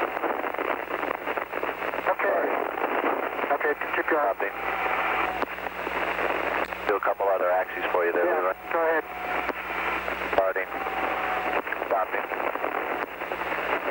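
Static hisses steadily on the radio link.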